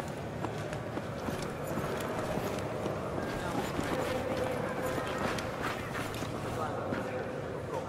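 Footsteps shuffle softly on a hard floor.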